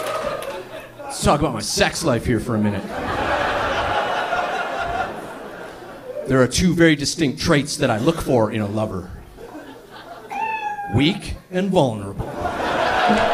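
A man talks animatedly into a microphone on stage.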